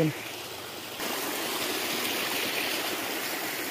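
Water rushes and gurgles over the ground.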